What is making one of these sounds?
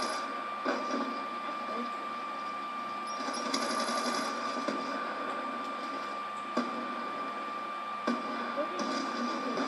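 Gunshots crack out now and then.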